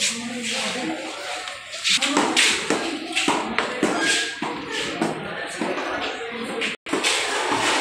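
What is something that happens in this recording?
Footsteps tap down a stairway.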